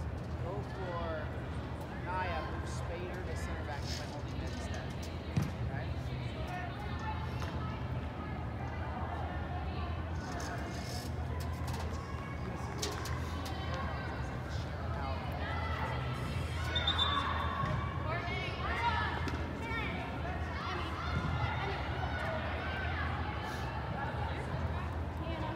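Young women call out to each other across a large echoing indoor hall.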